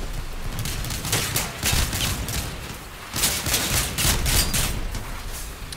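A mounted gun fires in rapid bursts.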